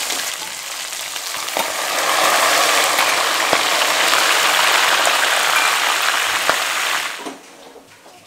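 Food sizzles loudly in a hot pot.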